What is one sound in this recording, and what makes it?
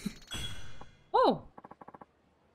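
A young man says a short startled line.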